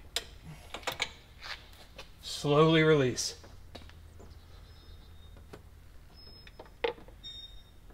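Metal tools clink and tap against engine parts.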